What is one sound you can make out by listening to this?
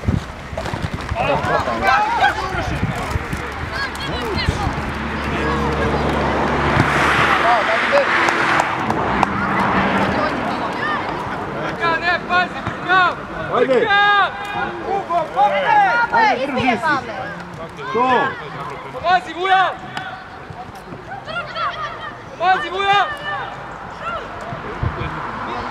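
Young players shout to each other across an open field outdoors.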